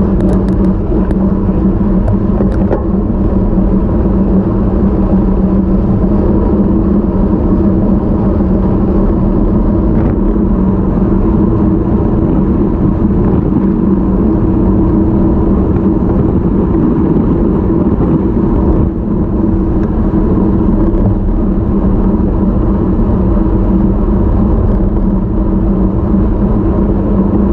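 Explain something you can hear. Wind rushes and buffets loudly past a moving vehicle.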